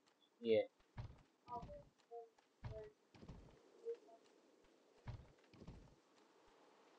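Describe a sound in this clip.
Heavy footsteps thud on wooden boards.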